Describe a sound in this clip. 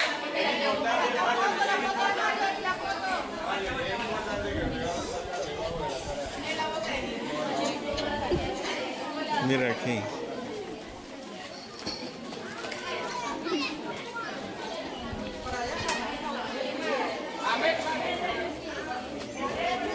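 Young girls chatter and giggle close by.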